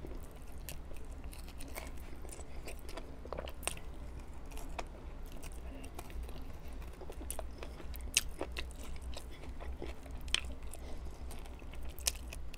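A man sucks sauce off his fingers close to a microphone.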